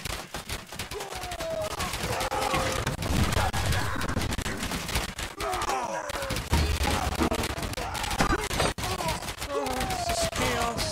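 Weapons clash and clang in a busy battle.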